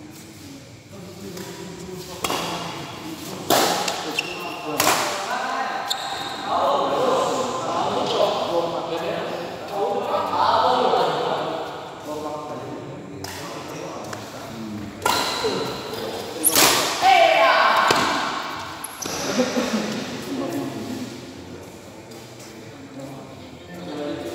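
Men talk and call out loudly in an echoing hall.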